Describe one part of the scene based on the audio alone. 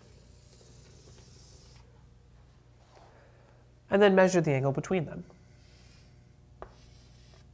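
Chalk scrapes and taps on a blackboard.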